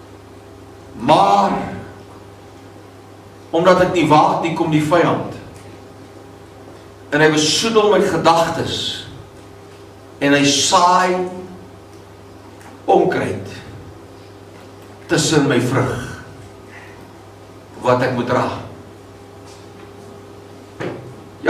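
An elderly man preaches with emphasis through a microphone, in short phrases with pauses, in an echoing room.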